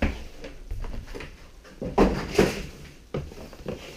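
A box is set down on a wooden surface with dull knocks.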